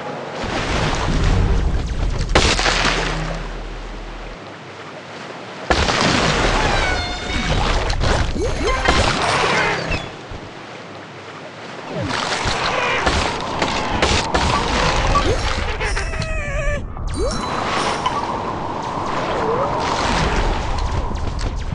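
Water splashes and churns as a large shark thrashes through it.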